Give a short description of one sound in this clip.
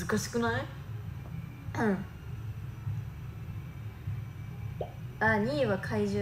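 A young woman speaks softly and expressively close by, with pauses.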